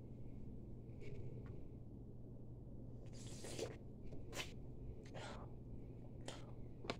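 A man blows short breathy puffs of air into his cupped hands, up close.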